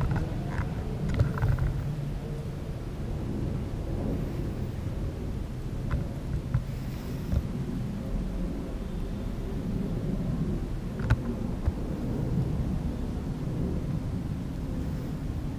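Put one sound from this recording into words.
A man talks quietly and closely into a microphone.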